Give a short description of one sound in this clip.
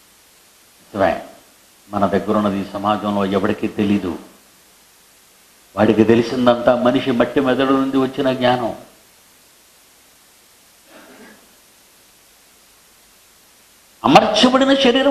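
An elderly man speaks emphatically into a close microphone, in short bursts with pauses.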